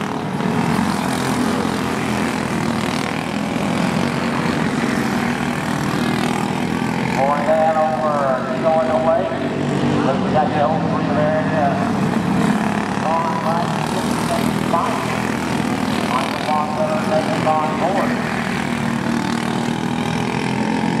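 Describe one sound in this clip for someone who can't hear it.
Small kart engines buzz and drone steadily.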